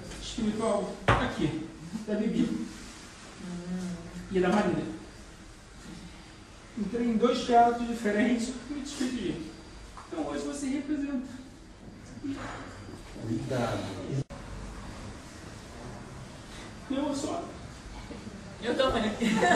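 An older man speaks calmly and close by.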